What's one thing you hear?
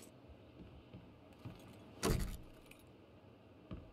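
A door creaks open.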